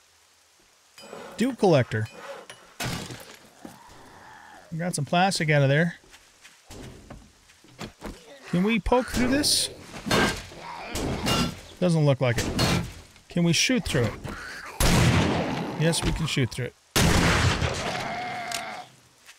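An older man talks with animation into a close microphone.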